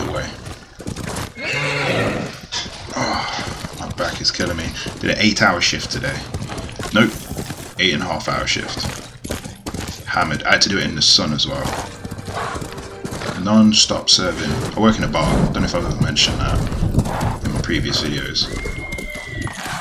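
A horse gallops with hooves thudding on snow.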